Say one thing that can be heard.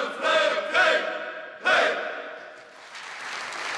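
A men's choir sings together in a large hall.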